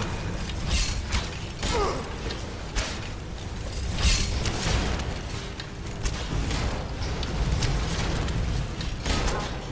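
Fire bursts and crackles.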